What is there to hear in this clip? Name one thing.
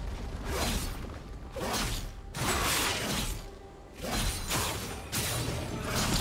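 Game sound effects of blades and spells clash in a fast fight.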